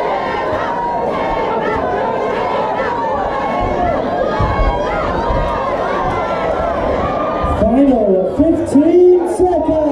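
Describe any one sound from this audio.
A crowd of men and women shouts and cheers in a large hall.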